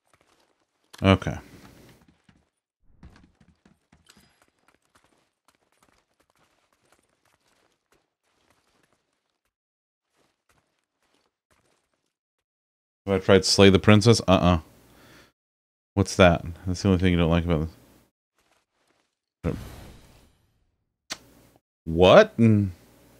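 A man speaks into a close microphone in short, animated bursts.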